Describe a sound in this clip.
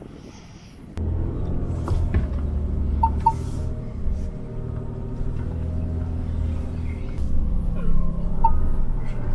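A truck engine rumbles low while driving over a bumpy track.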